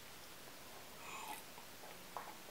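A young woman sips from a glass of water.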